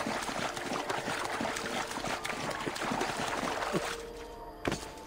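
Water splashes as a figure wades through it.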